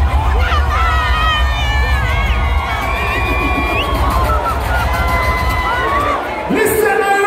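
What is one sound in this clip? Loud music with heavy bass plays through loudspeakers.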